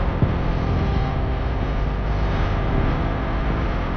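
A large truck roars past in the opposite direction.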